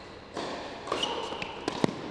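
A tennis ball bounces on a hard court a few times.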